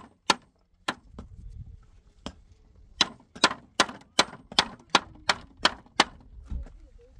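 A hammer taps sharply and repeatedly on a hard object.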